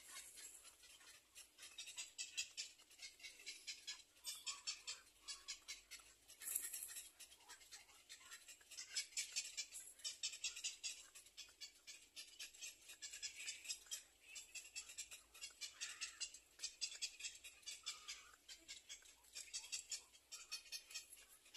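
Chicks in a nest cheep rapidly in repeated bursts.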